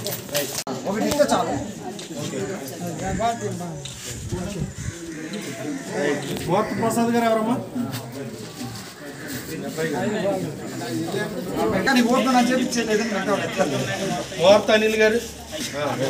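Men and women talk among themselves close by, outdoors.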